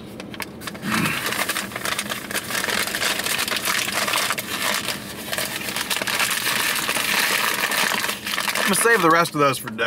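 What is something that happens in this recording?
Paper crinkles and rustles as it is handled.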